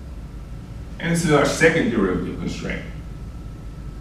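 A man speaks briefly in a calm lecturing tone.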